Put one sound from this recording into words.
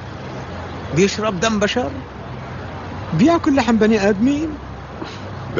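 Another older man answers in a low, serious voice.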